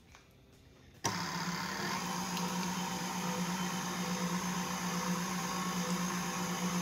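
A stand mixer's motor whirs steadily as its whisk beats cream.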